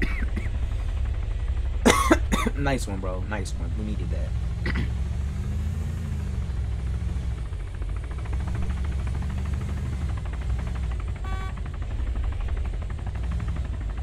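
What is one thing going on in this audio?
A vehicle engine rumbles steadily as it drives along a road.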